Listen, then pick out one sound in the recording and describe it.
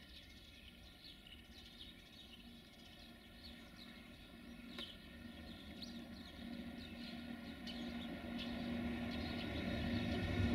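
Steel wheels squeal and click over the track.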